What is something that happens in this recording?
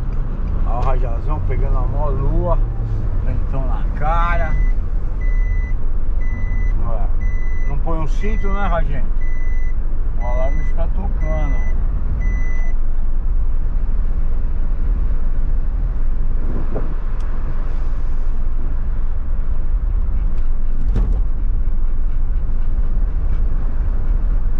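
A car engine hums steadily with road rumble inside the car.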